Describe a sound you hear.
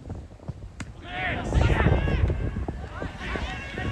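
Young men shout excitedly outdoors.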